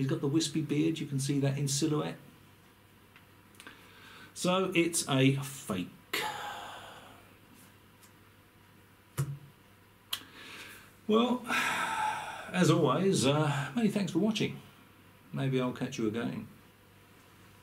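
An elderly man talks calmly and close by, in short bursts.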